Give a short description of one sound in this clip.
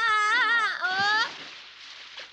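A boy shouts with animation.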